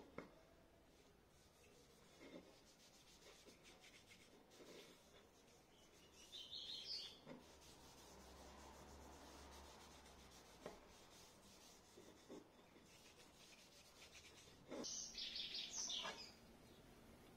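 Sandpaper rubs against wood in short scratchy bursts.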